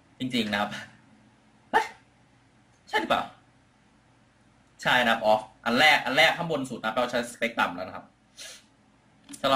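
A middle-aged man speaks calmly into a microphone, heard through an online call.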